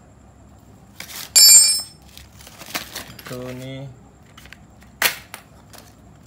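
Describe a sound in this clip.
Metal wrenches clink and clatter against one another.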